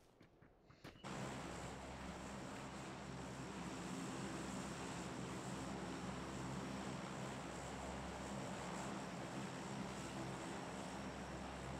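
A large propeller plane's engines drone steadily.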